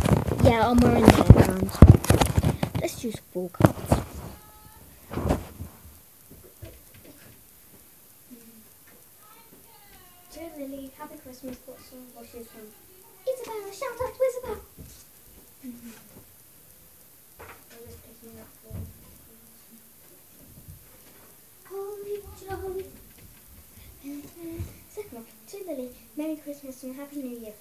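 A young girl talks close by, with animation.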